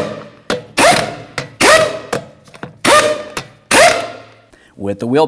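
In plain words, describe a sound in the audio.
An impact wrench rattles in loud short bursts.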